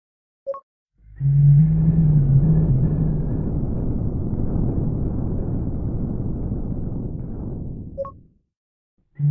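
A deep explosive rumble roars loudly.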